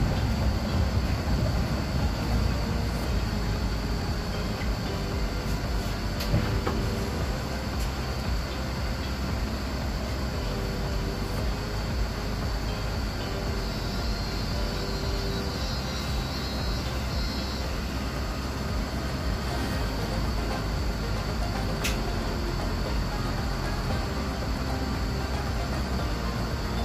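A tram's engine hums and rumbles steadily from inside the cabin.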